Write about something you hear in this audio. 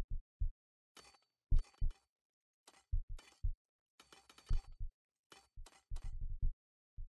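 Metal picks clink against rock.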